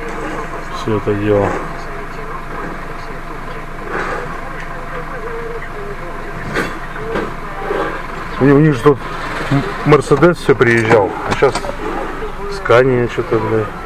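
A garbage truck's engine rumbles nearby.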